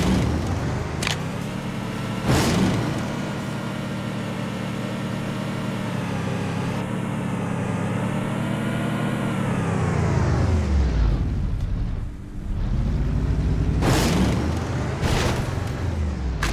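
A powerful car engine roars steadily, rising and falling in pitch.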